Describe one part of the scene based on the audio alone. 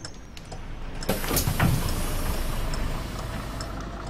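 Bus doors open with a loud hiss of air.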